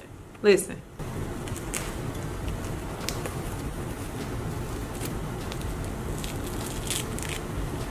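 A peel-off face mask crackles softly as it is pulled away from skin.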